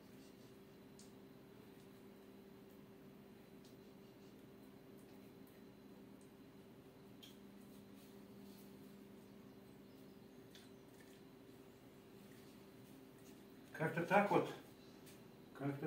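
A brush taps and dabs softly against a wall.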